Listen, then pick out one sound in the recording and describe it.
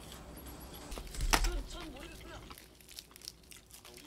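Crispy fried chicken crackles and crunches as it is pulled apart.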